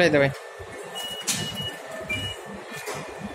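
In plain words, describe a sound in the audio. An electronic gate beeps shortly.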